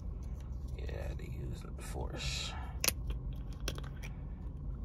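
A plastic bottle cap clicks as it is twisted open.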